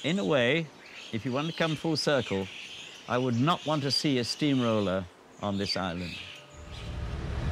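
An elderly man speaks close by.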